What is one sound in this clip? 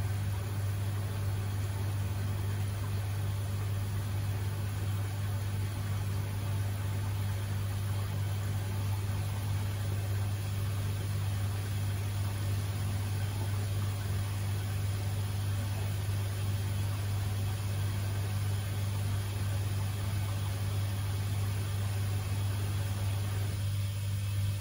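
Water sloshes faintly inside a washing machine drum.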